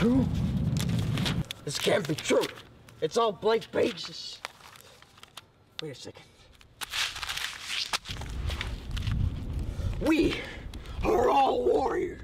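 Paper rustles and crinkles on concrete.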